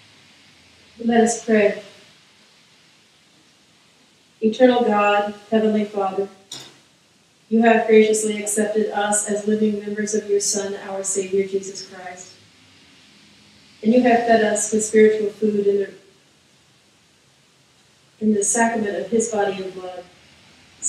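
An elderly man speaks calmly through a microphone in a large echoing room, in short phrases with pauses.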